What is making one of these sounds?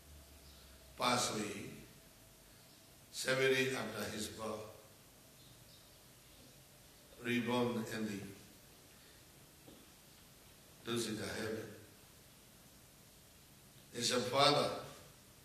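An elderly man chants in short phrases through a microphone, with pauses between them.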